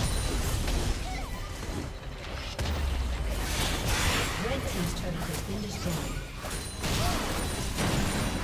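Video game spells and weapon hits crackle and whoosh in a busy fight.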